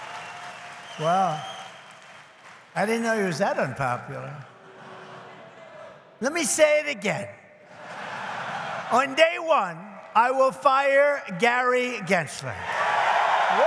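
An elderly man speaks forcefully into a microphone through loudspeakers in a large hall.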